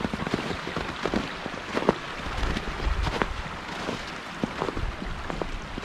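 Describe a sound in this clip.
A stream gurgles and trickles under ice.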